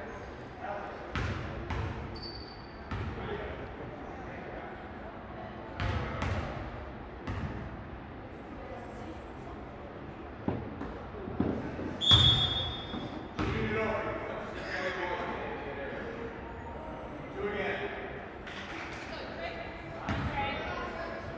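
Young players call out and talk nearby.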